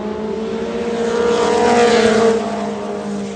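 A race car engine roars loudly as it passes close by.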